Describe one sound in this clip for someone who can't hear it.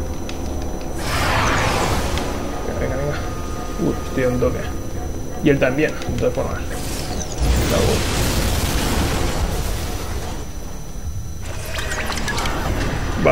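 Whooshing blasts rush past.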